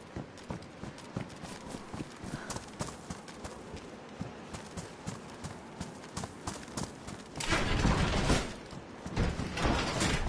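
Footsteps crunch quickly over grass and gravel.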